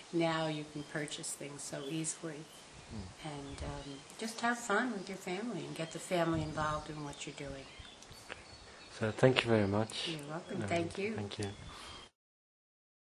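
A middle-aged woman speaks warmly and laughs, close by.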